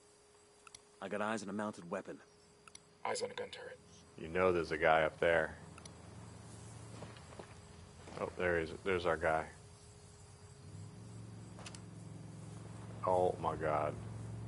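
A young man talks into a microphone in bursts, calmly and close.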